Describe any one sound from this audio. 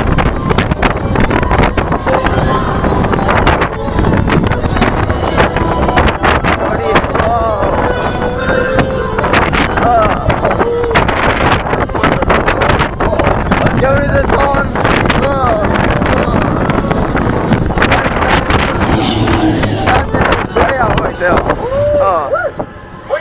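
A roller coaster rattles and roars loudly along its track.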